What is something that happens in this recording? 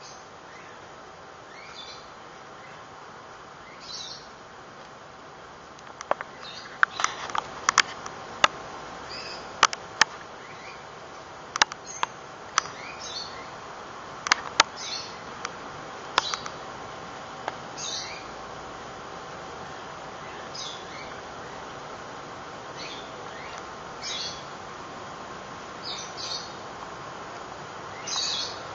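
A kitten's paws rustle softly through grass.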